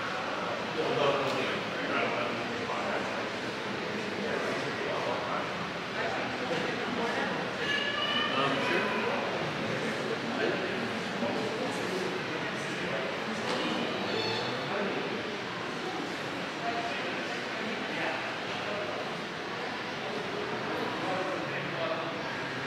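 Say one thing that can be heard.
Adult men and women chatter quietly in a large echoing hall.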